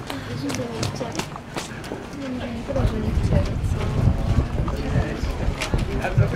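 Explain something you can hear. Shoes tap on pavement as a group walks.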